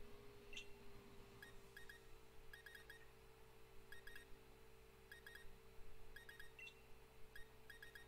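Short electronic blips tick in quick bursts as a game menu scrolls.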